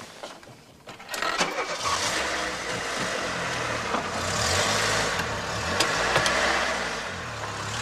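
A car engine starts and runs with a steady rumble.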